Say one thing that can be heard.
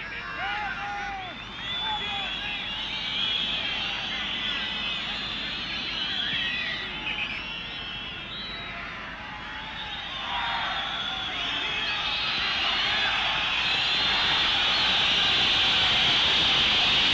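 A large crowd roars and whistles in an open stadium, growing louder toward the end.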